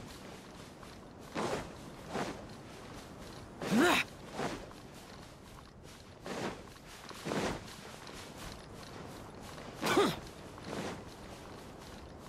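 Footsteps crunch on sand.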